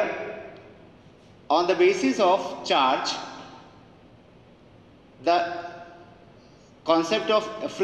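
A man speaks calmly into a microphone, with pauses, in a room with a slight echo.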